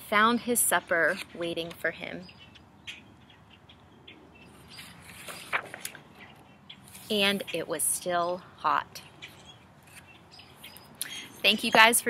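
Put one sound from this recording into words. A woman reads aloud expressively, close to the microphone.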